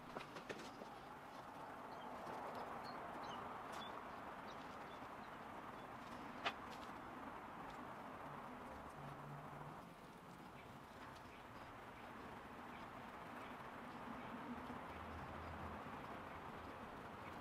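A paintbrush dabs and brushes softly against a plaster statue.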